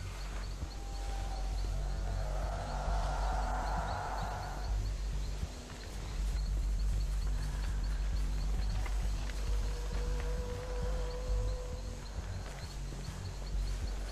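Footsteps crunch over dry leaves.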